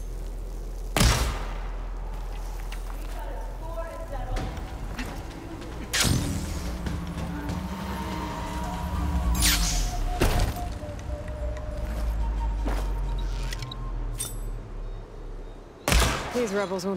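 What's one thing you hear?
A bowstring twangs as arrows are loosed.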